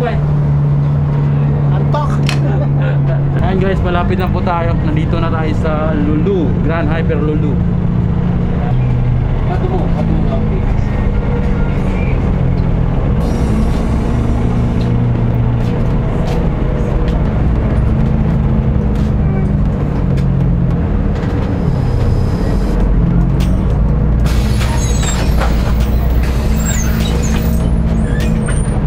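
Metal clatters and knocks as the bus rattles along.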